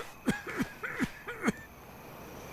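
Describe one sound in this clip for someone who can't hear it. A man coughs hoarsely close by.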